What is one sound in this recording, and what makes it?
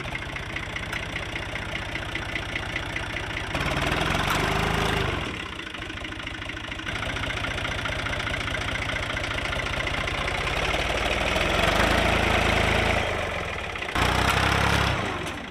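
A tractor engine chugs steadily and revs up under load.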